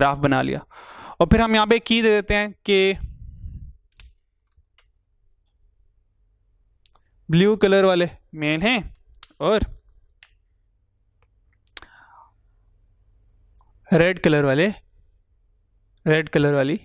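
A man lectures calmly into a microphone, pausing between phrases.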